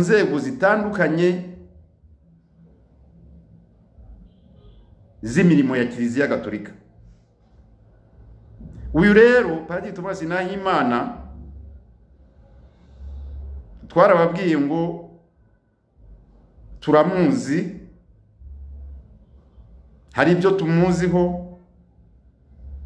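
A middle-aged man speaks calmly and earnestly, close up, in short bursts with pauses.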